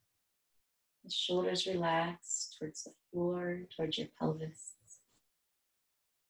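A young woman speaks calmly and softly, close by.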